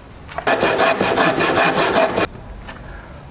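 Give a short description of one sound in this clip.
A hand saw cuts through a wooden board.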